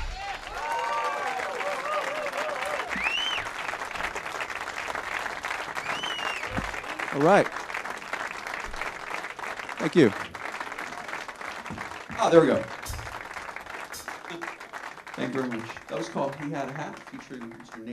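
A live band plays.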